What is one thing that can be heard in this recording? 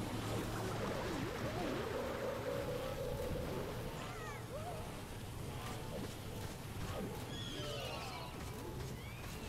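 Explosions and impacts thud in a game battle.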